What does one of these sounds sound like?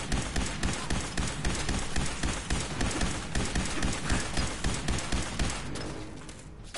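A laser gun fires rapid, pounding bursts.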